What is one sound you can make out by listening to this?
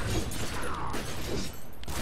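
Guns fire and blasts crack in a fight.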